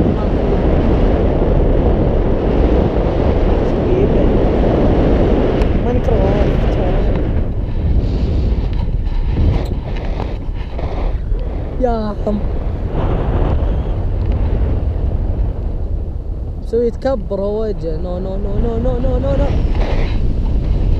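Wind rushes loudly past a microphone outdoors.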